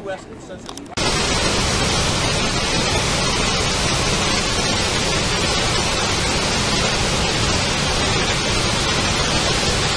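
A large waterfall roars steadily.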